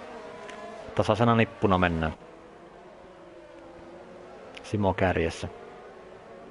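A racing car engine roars loudly as it passes close by.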